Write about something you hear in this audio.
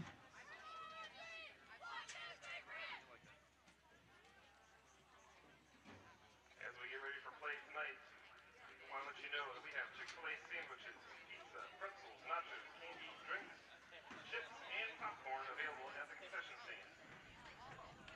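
Young women shout and cheer excitedly at a distance outdoors.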